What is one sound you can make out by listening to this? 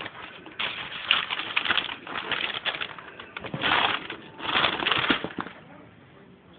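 Tissue paper rustles and crinkles close by.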